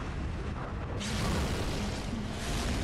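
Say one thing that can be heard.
A sword slashes and blood splatters with a wet burst.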